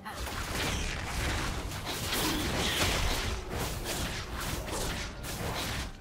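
Spell effects crackle and clash as game characters fight a large monster.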